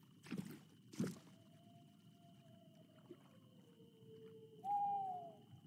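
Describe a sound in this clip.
Water laps gently against the shore.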